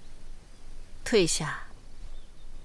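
A young woman speaks calmly and briefly.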